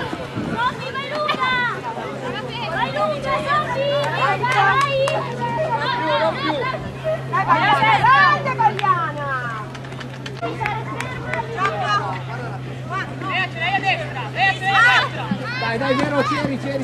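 Young women shout and cheer loudly nearby, outdoors.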